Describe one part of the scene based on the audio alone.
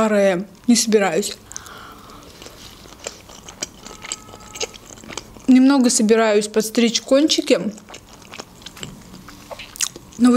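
A young woman chews food wetly and smacks her lips.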